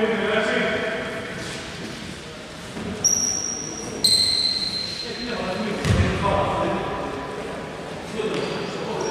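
Players call out to each other in an echoing hall.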